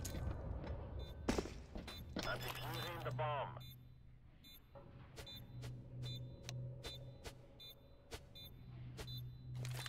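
A bomb timer beeps in short, regular electronic chirps.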